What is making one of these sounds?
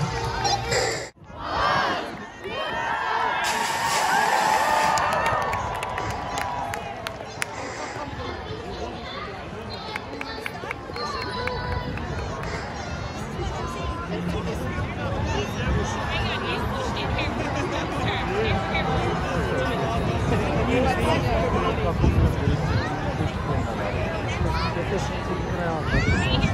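A large outdoor crowd chatters and cheers all around.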